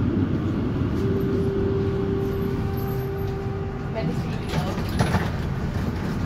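A tram's doors open with a beep and clatter.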